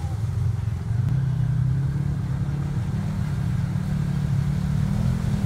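Muddy water splashes and churns around an off-road vehicle's wheels.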